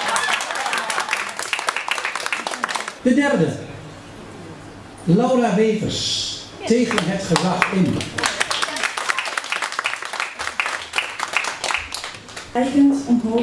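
An audience claps in a room.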